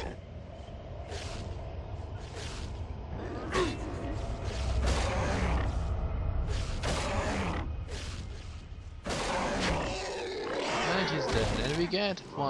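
Metal weapons clash and clang in a fight, again and again.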